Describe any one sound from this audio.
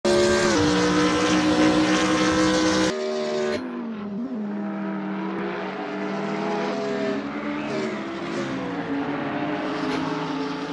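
A racing car engine roars at high revs, shifting through the gears.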